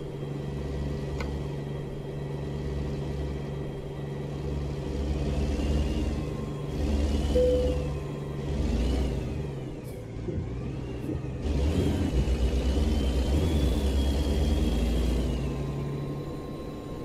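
A truck engine rumbles steadily and rises and falls as it drives.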